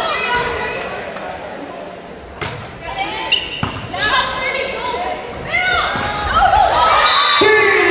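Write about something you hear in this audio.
A volleyball thumps off hands during a rally.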